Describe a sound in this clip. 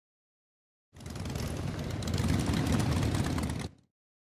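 A motor scooter engine hums steadily as it rides by.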